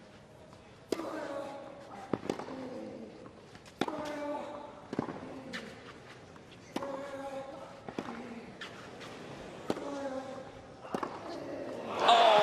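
A male tennis player grunts with each hit.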